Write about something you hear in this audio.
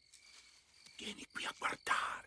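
An elderly man calls out with animation.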